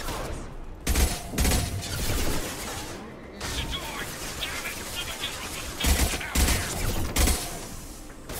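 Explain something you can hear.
Gunshots ring out in bursts.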